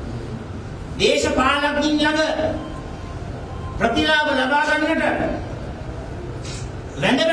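A man speaks forcefully into microphones, in a room with some echo.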